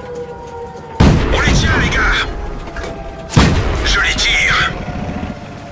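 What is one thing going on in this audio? A tank cannon fires with a loud boom and echo.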